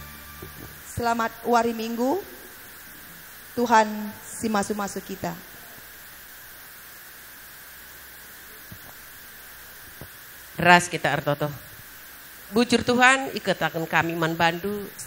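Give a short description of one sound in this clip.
A woman speaks through a microphone and loudspeaker.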